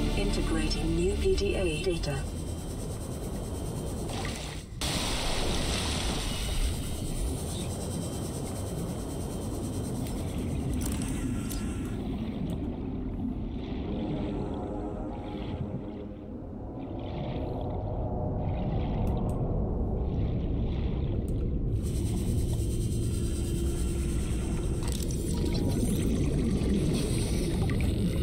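A low underwater rumble with bubbling fills the background.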